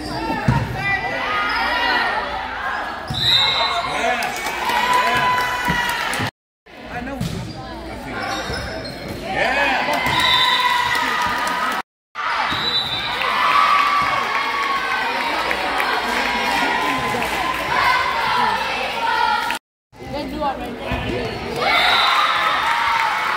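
Young girls shout and cheer in an echoing gym.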